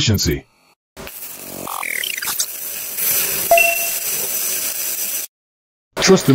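A welding arc crackles and hisses.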